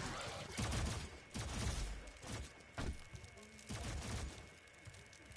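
A gun fires in sharp blasts.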